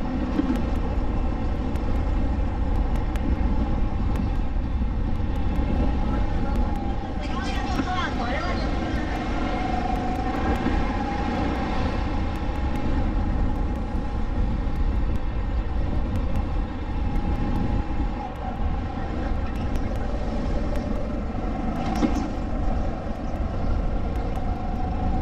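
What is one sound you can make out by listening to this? A four-stroke go-kart engine drones at full throttle.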